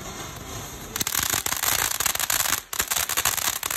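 A firework fountain pops and crackles loudly as it throws out coloured sparks.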